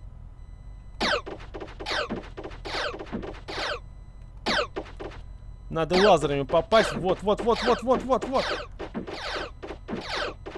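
Laser guns fire in quick, falling zaps.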